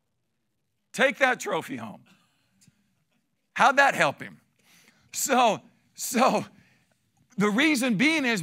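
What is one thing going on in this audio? A middle-aged man speaks with animation through a microphone, with pauses between phrases.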